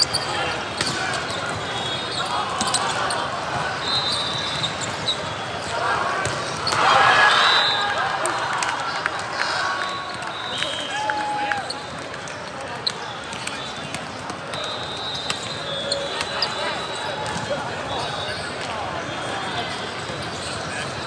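Many voices chatter and echo in a large hall.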